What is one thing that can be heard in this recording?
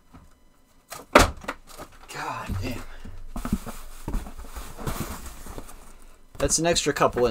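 Cardboard and packing material rustle as a box is handled.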